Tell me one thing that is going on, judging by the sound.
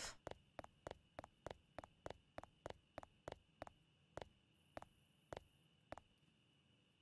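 Footsteps tread steadily on a hard road.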